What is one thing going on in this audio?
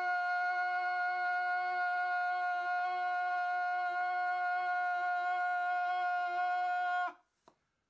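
A man lets out a long, steady, high-pitched cry close by.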